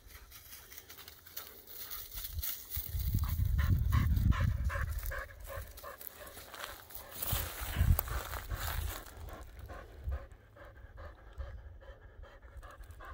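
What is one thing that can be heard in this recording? A dog pants quickly nearby.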